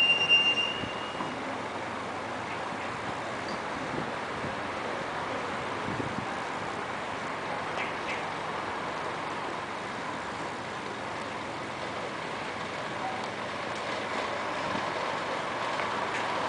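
A bus engine rumbles as the bus slowly draws nearer.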